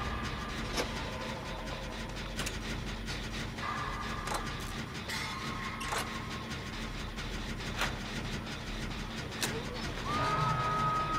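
A machine rattles and clanks as it is repaired.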